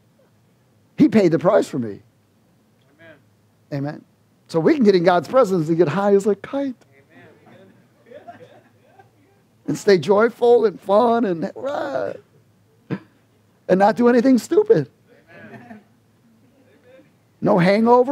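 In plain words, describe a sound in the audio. A middle-aged man speaks with animation into a headset microphone, in bursts with pauses.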